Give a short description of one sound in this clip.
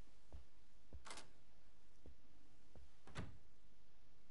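A door opens and shuts.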